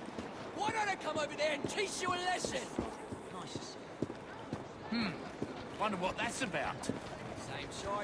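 Footsteps tread softly on cobblestones.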